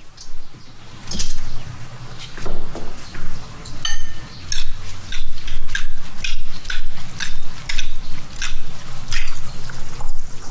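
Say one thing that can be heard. Cutlery clinks against a ceramic bowl as pasta is tossed.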